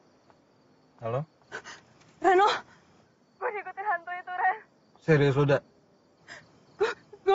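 A young woman speaks tearfully into a phone.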